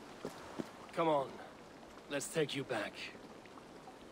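A man says a few words calmly and closely.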